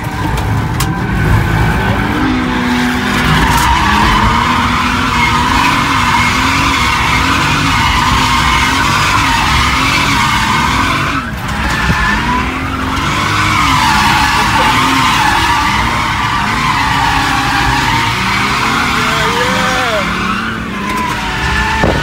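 Tyres screech loudly as the car slides.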